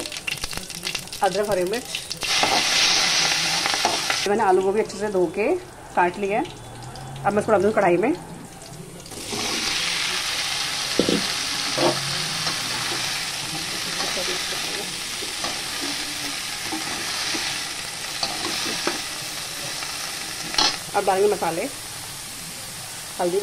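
A spatula scrapes and clinks against a metal pan.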